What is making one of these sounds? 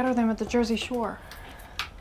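A cupboard door clicks open.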